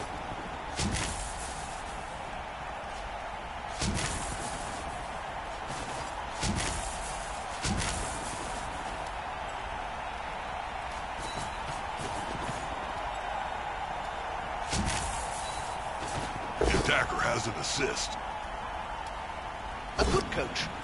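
Dull thumps from a game's players clashing sound every few seconds.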